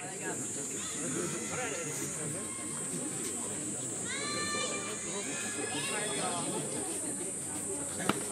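Young men call out to each other outdoors.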